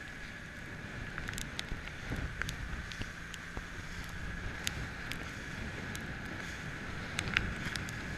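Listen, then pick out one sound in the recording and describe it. Wind blows hard, buffeting outdoors.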